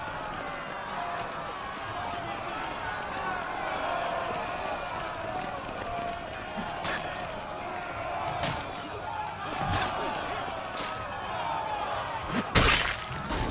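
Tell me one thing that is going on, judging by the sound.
A crowd murmurs and shouts in a large open square.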